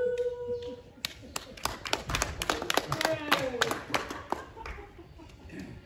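A person claps hands in a steady rhythm.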